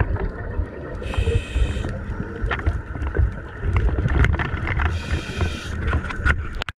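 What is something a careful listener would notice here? A diver breathes out through a regulator in bursts of bubbling, hissing air.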